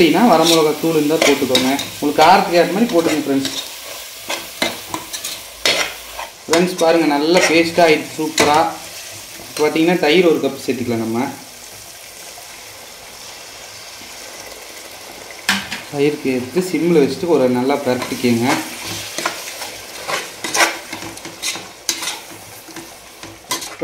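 A metal spatula scrapes and clanks against a metal pot while stirring.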